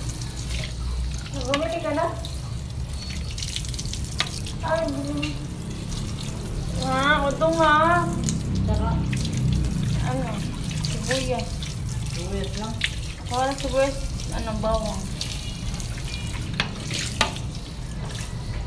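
Water splashes as a plate is washed under a tap.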